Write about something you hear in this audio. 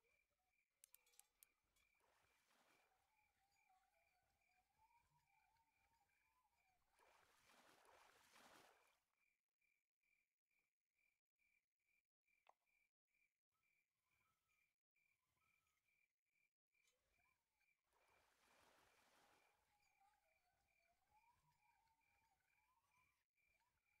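A fishing reel whirs as line is wound in.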